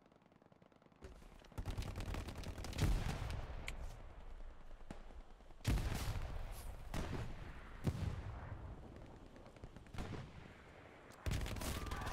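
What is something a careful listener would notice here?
Rapid gunfire cracks outdoors.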